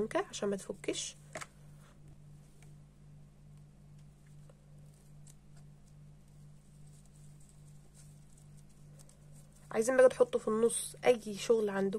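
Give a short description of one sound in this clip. A stiff ribbon rustles softly as it is folded by hand.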